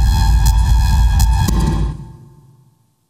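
Loud music plays in a large hall and then stops.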